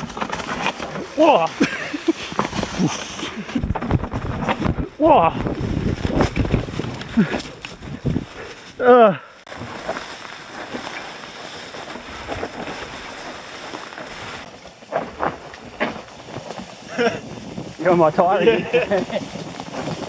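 A man shouts out with excitement nearby.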